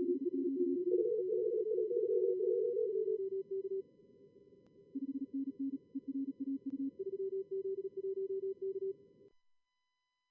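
Several Morse code signals beep rapidly at different pitches over a soft radio hiss.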